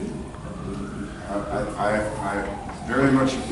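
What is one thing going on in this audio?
An elderly woman talks close by.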